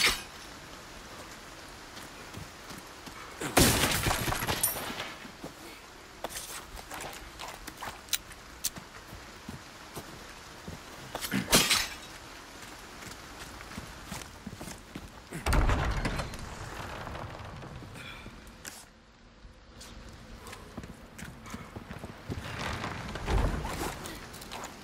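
Footsteps crunch on rough ground and wooden boards.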